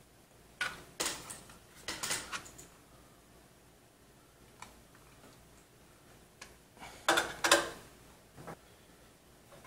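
Plastic and metal parts clack and rattle as a hand handles them.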